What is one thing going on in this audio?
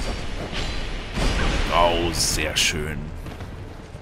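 Metal weapons clash in a fight.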